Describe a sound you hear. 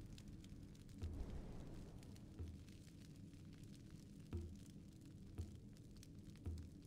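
Soft thuds of game menu selections sound every second or two.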